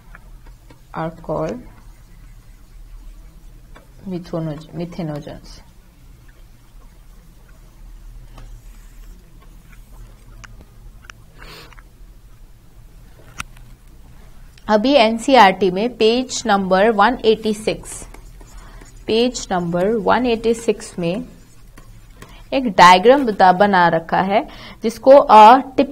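A young woman speaks calmly and closely into a microphone, with pauses.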